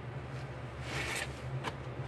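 A wet sponge squelches as hands squeeze it.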